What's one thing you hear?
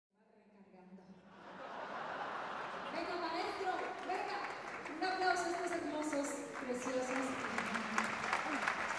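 A live band plays music through loudspeakers in a large hall, fading in at the start.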